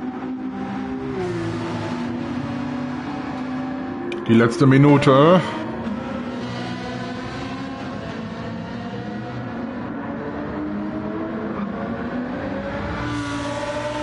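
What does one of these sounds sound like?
A racing car engine roars and whines steadily, its pitch rising and falling as it shifts gears.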